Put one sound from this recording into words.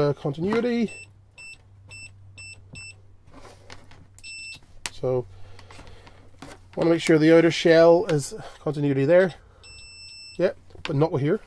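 A multimeter beeps in short, high pips.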